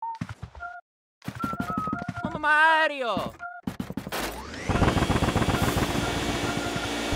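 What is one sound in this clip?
A video game plays short chiming effects and a falling whistle.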